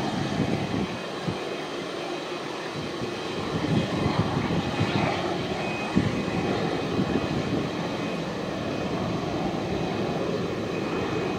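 A large jet airliner's engines roar steadily as it taxis slowly.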